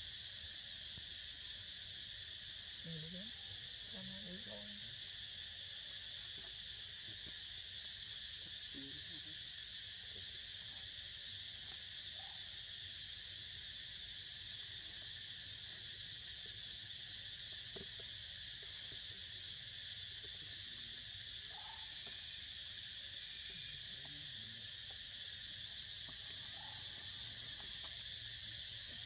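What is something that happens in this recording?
Monkeys chew and munch on fruit close by.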